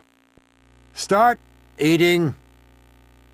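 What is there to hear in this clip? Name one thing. A man calls out a firm order.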